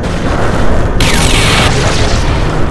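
A jet thruster blasts in a short hissing burst.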